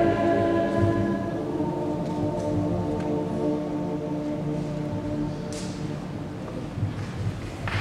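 A mixed choir sings together in a large echoing hall, holding long chords that fade out.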